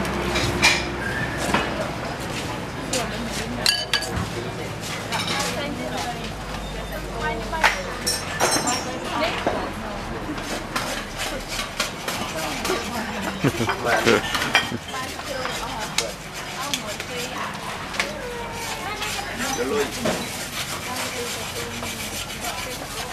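Utensils clink and scrape against metal trays.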